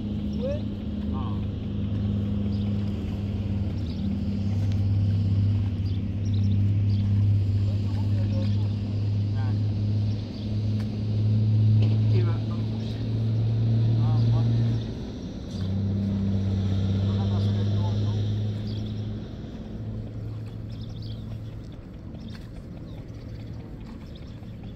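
Hands push rice seedlings into wet mud with soft squelches and splashes.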